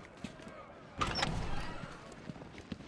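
A heavy metal door swings open with a loud clank.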